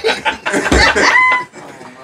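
Young adults laugh together, close by.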